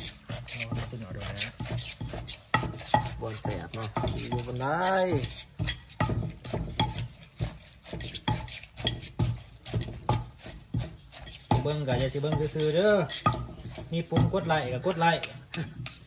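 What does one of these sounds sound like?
A pestle pounds rhythmically in a stone mortar.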